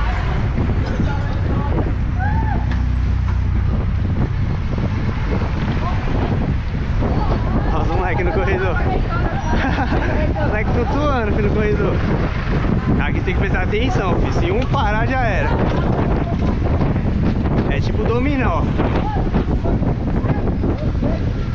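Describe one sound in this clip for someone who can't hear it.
Wind rushes and buffets steadily past a moving motorcycle.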